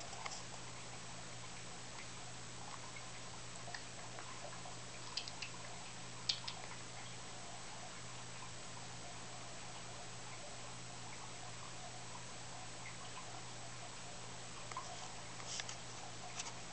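A parrot gives short, soft squeaks now and then.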